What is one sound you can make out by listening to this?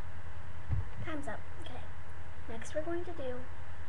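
A young girl speaks briefly, close to the microphone.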